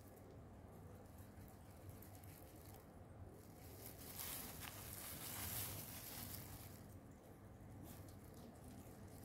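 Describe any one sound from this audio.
A small metal tool scrapes softly through soft fruit.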